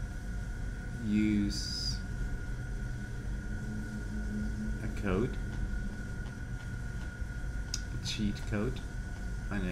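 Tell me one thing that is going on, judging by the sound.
A young woman speaks briefly and quietly into a microphone.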